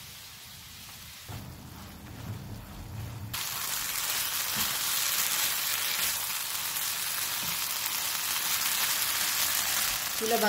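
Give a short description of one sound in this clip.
A spatula scrapes and pushes food around a frying pan.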